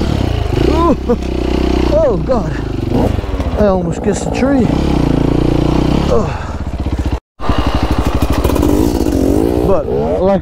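A second dirt bike engine revs a short distance ahead.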